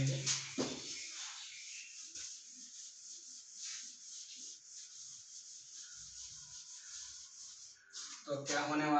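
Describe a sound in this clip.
A duster rubs across a chalkboard, wiping it clean.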